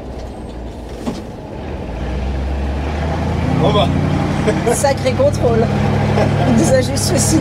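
A vehicle engine hums steadily and rises as the vehicle pulls away.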